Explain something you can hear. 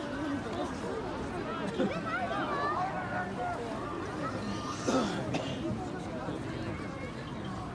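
A crowd of young men chatter and call out outdoors.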